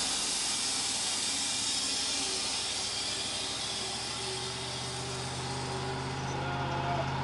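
A band saw blade cuts through a log with a hissing whine.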